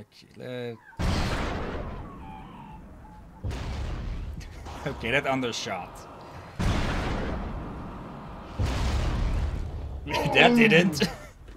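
Explosions boom loudly in a video game.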